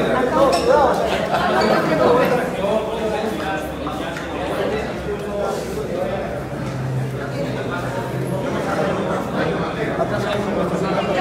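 A crowd of men and women talk and call out all at once close by.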